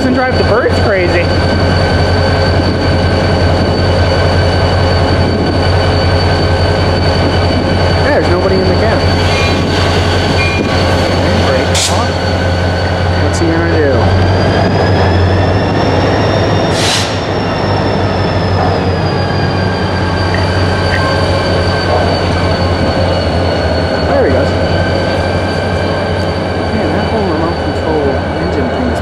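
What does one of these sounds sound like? A locomotive horn sounds with a long, steady blare.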